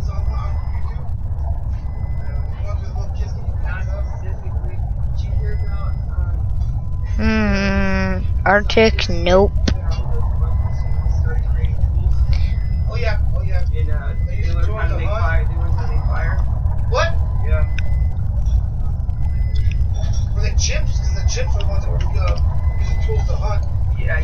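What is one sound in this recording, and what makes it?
Underwater ambience rumbles in a low, steady drone.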